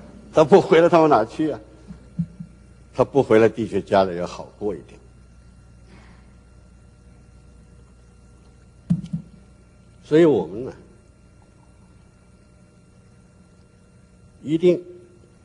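An elderly man speaks with feeling into a microphone.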